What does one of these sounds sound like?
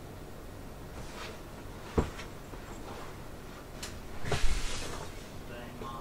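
Fabric rustles and thumps as bedding is moved.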